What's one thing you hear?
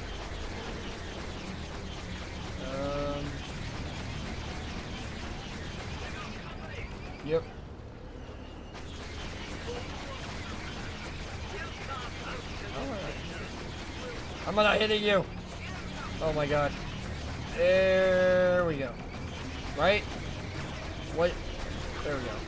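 Laser cannons fire in short blasts.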